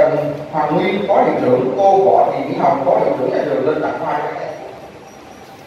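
A man speaks through a loudspeaker in a large echoing hall.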